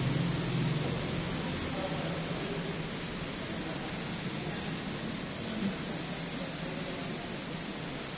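An electric fan whirs steadily in a large echoing hall.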